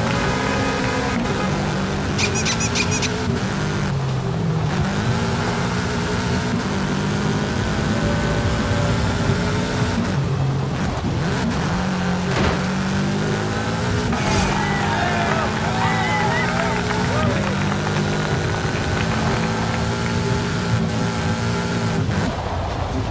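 A car engine revs and roars as the car speeds up and shifts gears.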